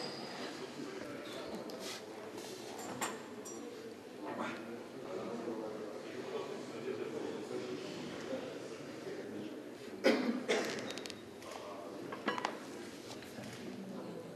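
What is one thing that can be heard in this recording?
A crowd murmurs.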